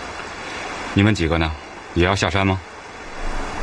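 A man asks a question in a low voice.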